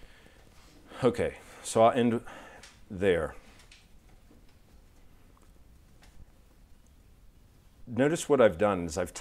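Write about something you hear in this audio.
A man speaks calmly and clearly through a lapel microphone, in short bursts.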